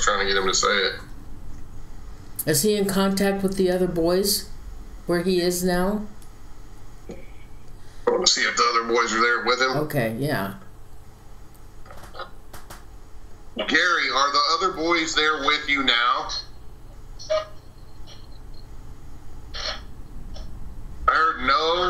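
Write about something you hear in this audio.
A man talks through an online call, speaking with animation.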